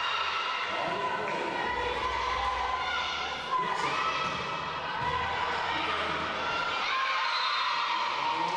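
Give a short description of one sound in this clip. Players' shoes squeak on a hard floor in a large echoing hall.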